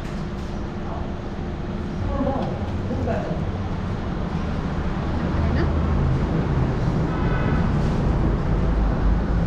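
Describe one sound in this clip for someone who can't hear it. Spoons clink against metal plates.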